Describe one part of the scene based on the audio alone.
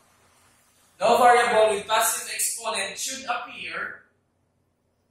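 A young man speaks clearly and close by.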